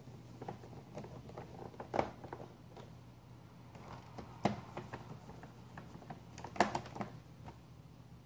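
Plastic parts click and clatter.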